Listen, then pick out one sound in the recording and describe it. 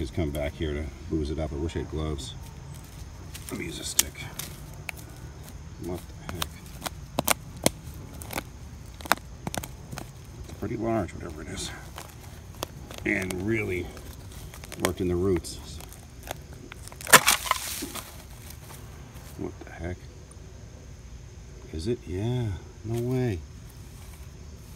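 Dry leaves and soil rustle and scrape under a hand, close by.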